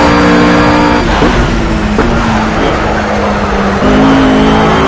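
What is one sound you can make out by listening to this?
A GT3 race car engine falls in pitch as it brakes and downshifts into a corner.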